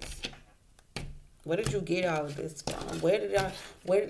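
Playing cards are shuffled with a soft riffle.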